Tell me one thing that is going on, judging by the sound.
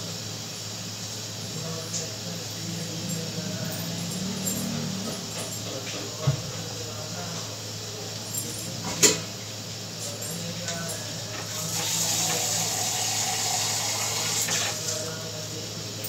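Thick curry bubbles and simmers in a pot.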